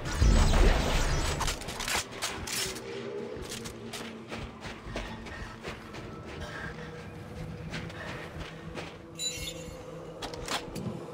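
Heavy boots crunch through snow.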